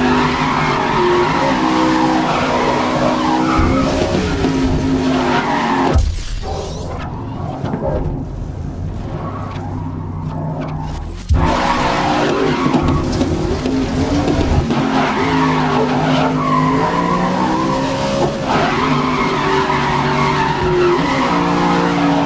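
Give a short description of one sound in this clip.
Tyres screech as a race car slides through corners.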